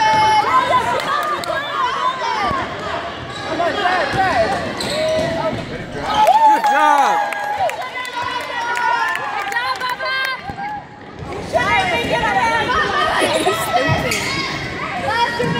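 A crowd of spectators cheers and shouts in a large echoing hall.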